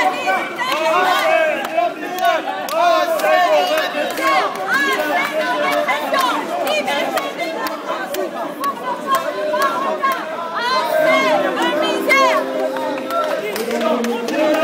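A crowd of men and women shout and chant loudly in a large echoing hall.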